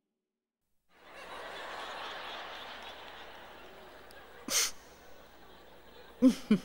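An audience laughs softly.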